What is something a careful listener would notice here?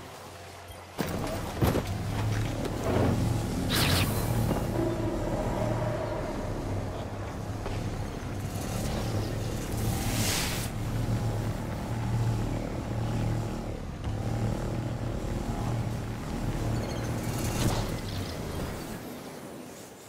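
A hovering vehicle's engine hums steadily as it speeds along.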